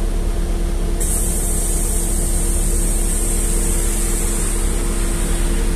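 Tyres hiss on a wet road as a car passes close by.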